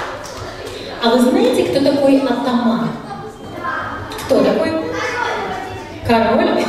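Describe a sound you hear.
A young woman speaks clearly into a microphone, heard over loudspeakers in a large echoing hall.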